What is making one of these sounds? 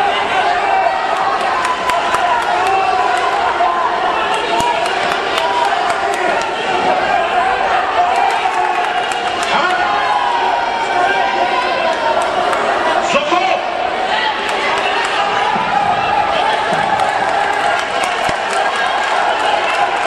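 A crowd of spectators shouts and cheers throughout a large echoing hall.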